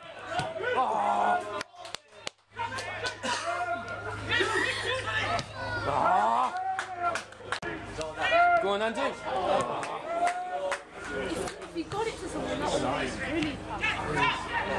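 Football players shout to each other across an open pitch outdoors.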